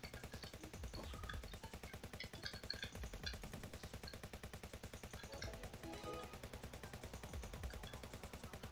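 Rapid gunfire pops in a video game.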